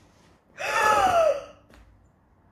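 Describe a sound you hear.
A young woman gasps loudly with excitement close by.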